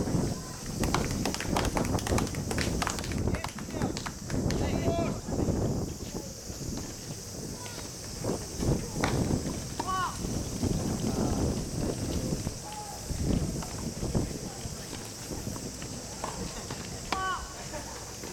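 Tennis balls are struck with sharp pops of rackets, out in the open.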